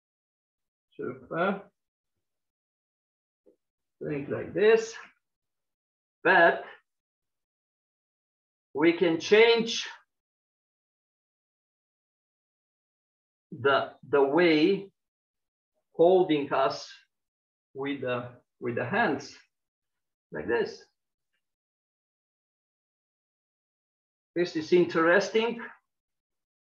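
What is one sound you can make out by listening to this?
A man speaks calmly in short phrases, heard through an online call.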